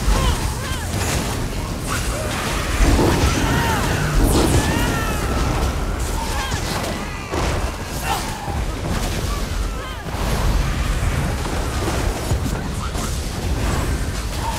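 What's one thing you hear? Magic spells crackle and blast in a busy fight.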